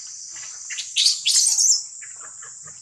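A baby monkey shrieks loudly nearby.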